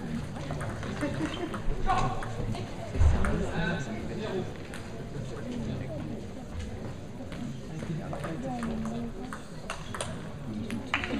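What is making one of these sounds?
A table tennis ball clicks back and forth on paddles and the table.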